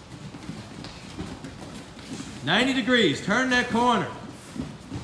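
Shoes thud and squeak on a padded mat.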